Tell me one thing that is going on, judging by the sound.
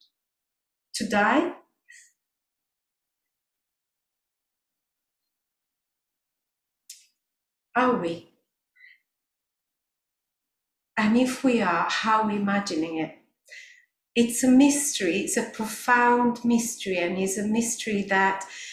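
A woman sings into a microphone in a reverberant room, in phrases separated by pauses.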